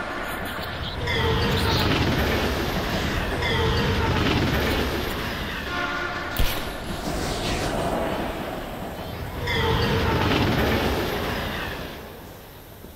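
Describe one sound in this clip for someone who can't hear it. Explosions rumble and roar, echoing through a tunnel.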